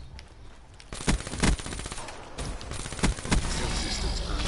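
Gunshots fire in loud bursts.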